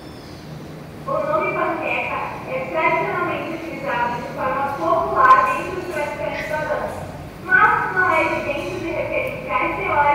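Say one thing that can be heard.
A man speaks with animation in an echoing room.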